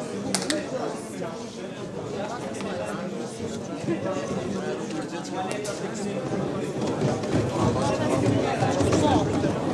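A young man speaks with animation to an audience.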